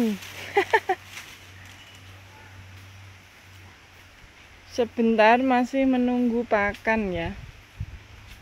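Water splashes lightly in a stream.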